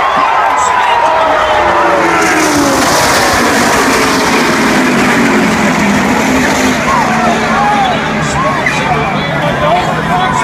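A large crowd cheers and screams loudly all around.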